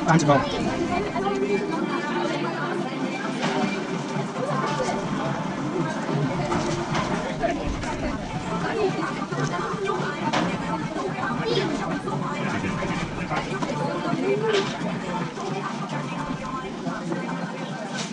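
Many people chatter in the background of a busy room.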